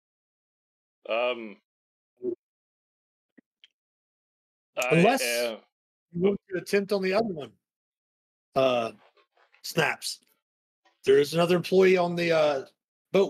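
Men talk with animation over an online call, in short bursts with pauses.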